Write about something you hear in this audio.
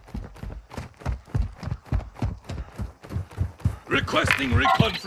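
Footsteps crunch quickly on dirt and gravel.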